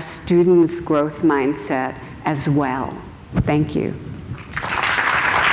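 A woman speaks calmly through a microphone in a large hall.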